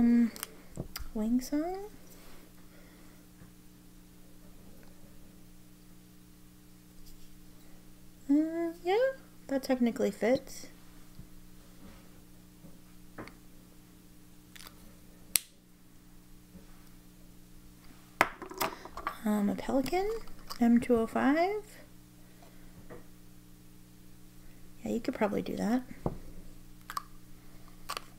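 Plastic pen caps click as they are pulled off and pushed onto pens.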